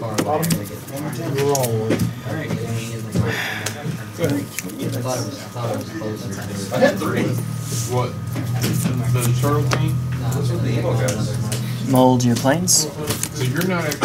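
Playing cards slide and tap on a soft mat.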